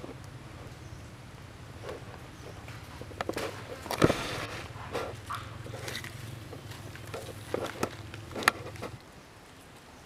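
A monkey's feet patter and rustle over dry leaves and gravel.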